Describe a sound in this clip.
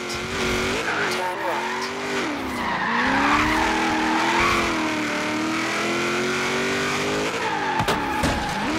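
A racing car engine roars loudly, its pitch dropping and climbing as the car shifts gears and drifts.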